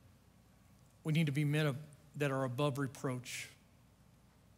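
A middle-aged man speaks with emphasis through a microphone, pausing between phrases.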